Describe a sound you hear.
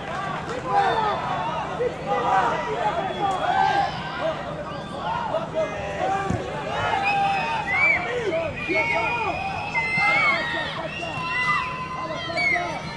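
A crowd chatters and calls out from the stands of an outdoor ground.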